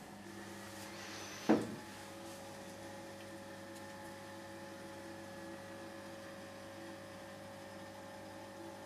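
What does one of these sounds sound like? Water sloshes gently as a man shifts in a tub.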